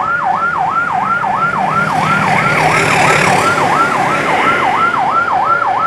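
Motorcycle engines rumble and rev nearby.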